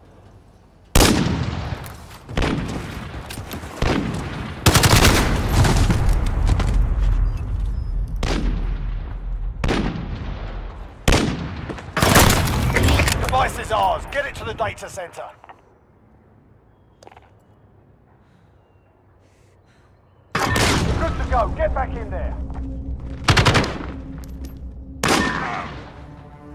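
Gunshots ring out in sharp bursts, echoing briefly.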